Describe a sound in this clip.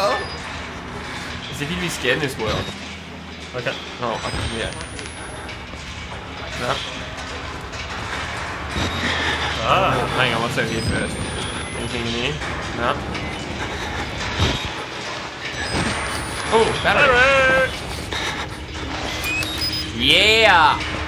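A second young man answers through a headset microphone.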